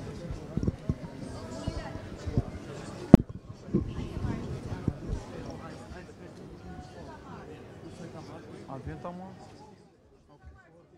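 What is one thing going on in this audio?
A crowd of men murmurs and talks nearby.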